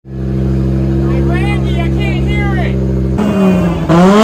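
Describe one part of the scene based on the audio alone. A race car engine idles with a deep, steady rumble.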